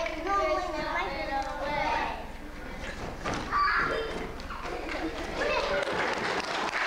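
Young children sing together in an echoing hall.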